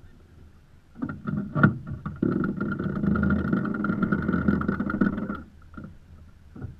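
A winch ratchets rapidly as it is cranked.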